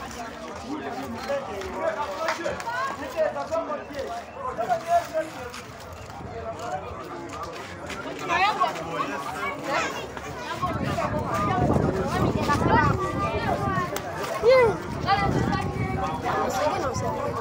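A crowd of men, women and children talk and call out close by outdoors.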